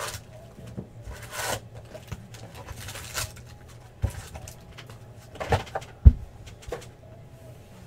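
Cardboard flaps knock and scrape as a box is handled.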